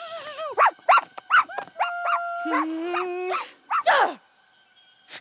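A puppy yips and whines excitedly.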